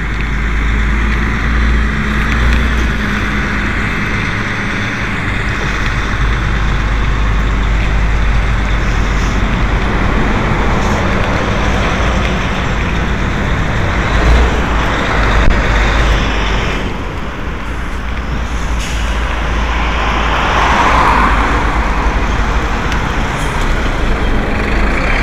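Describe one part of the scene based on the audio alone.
Tyres crunch and rattle over gravel and a bumpy road.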